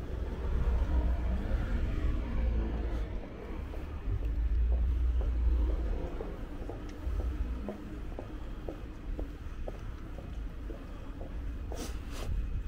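Footsteps walk steadily on pavement close by.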